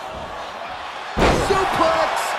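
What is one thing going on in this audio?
A body slams down hard onto a wrestling mat with a heavy thud.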